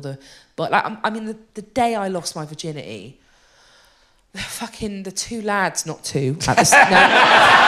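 A woman speaks into a microphone with animation in a large hall.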